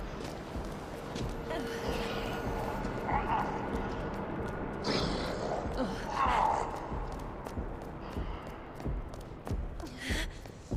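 Footsteps tap on a hard stone floor in an echoing hall.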